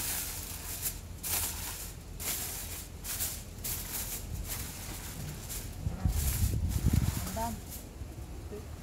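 Aluminium foil crinkles and rustles as it is handled.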